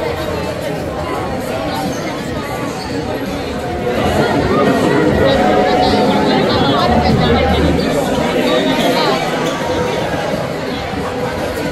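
A crowd of children and adults chatters loudly in a large echoing hall.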